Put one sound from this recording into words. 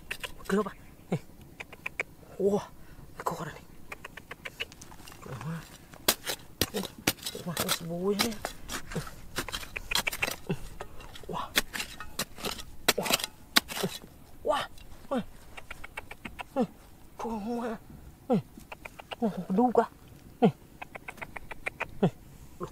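Fingers scratch and rub at gritty earth.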